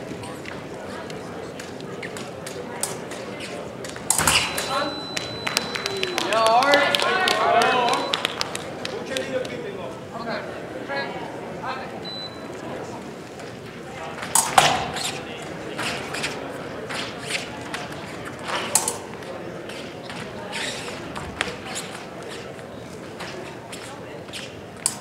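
Fencing blades clash and click in a large echoing hall.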